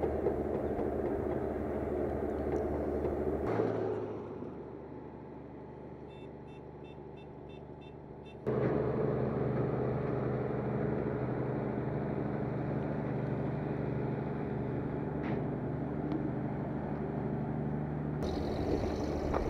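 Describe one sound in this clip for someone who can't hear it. A heavy diesel locomotive engine rumbles steadily as a train rolls slowly past.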